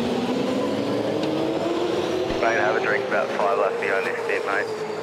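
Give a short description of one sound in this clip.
A race car engine rises in pitch as it accelerates.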